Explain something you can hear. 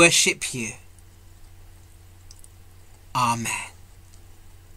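A middle-aged man speaks in short bursts close to a microphone, heard as over an online call.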